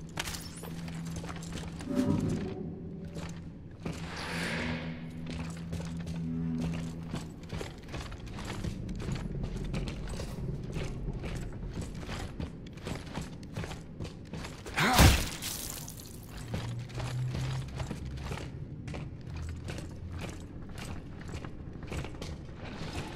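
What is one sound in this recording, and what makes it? Heavy boots thud on a hard floor at a steady walking pace.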